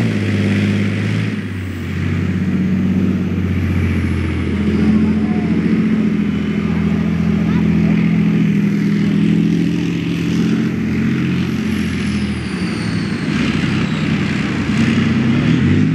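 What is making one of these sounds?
Tank tracks clank and squeal as they churn through mud.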